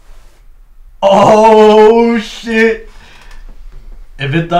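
A young man speaks loudly and with animation close by.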